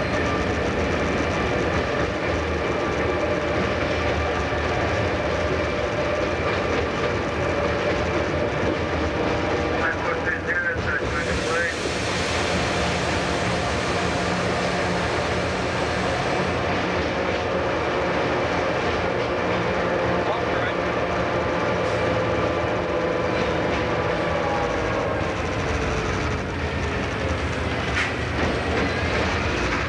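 A train's electric motor whines steadily and drops in pitch near the end.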